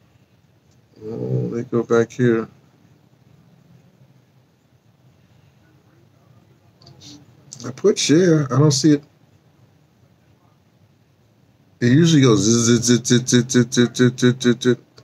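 An elderly man speaks slowly and quietly close by, in short bursts with pauses.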